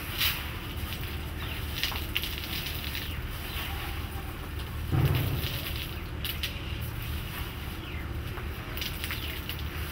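Small dried balls click and rattle as hands gather them from the ground.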